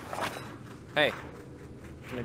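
A cow lows briefly.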